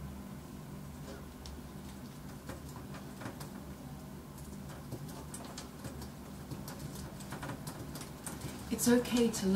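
Keys click softly as fingers tap on a keyboard.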